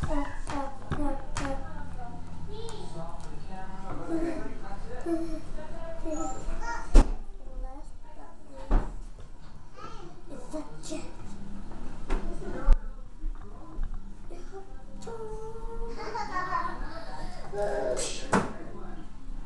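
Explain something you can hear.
Small plastic toys knock and tap against a wooden tabletop.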